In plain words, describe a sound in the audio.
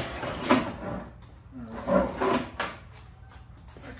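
A wooden frame bumps and scrapes as it is lifted.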